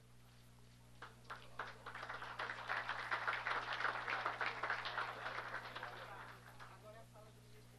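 A crowd applauds, clapping steadily, then fades out.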